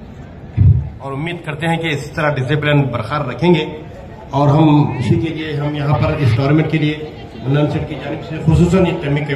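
A man speaks loudly and clearly into a microphone, as if giving an address.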